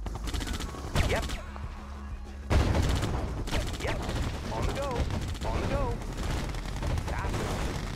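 Helicopter rotors thump steadily.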